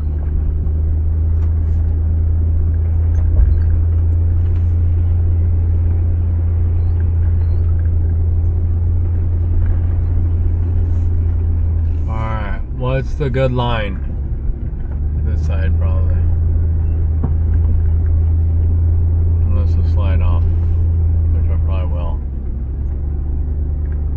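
A vehicle engine hums steadily at a low pitch.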